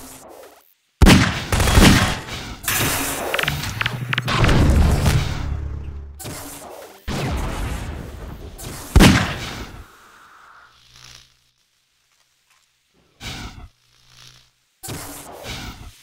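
Gunshots ring out sharply.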